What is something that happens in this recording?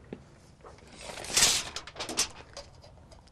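A metal tape measure rattles as it is pulled out.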